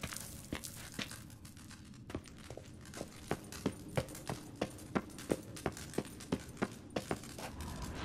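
Footsteps thud at a steady pace on a wooden floor.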